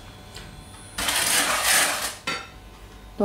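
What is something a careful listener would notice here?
Liquid pours into a hot pan and sizzles loudly.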